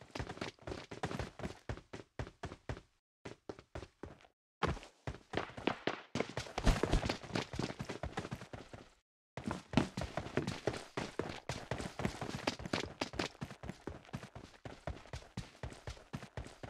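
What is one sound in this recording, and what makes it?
Footsteps thud quickly as someone runs.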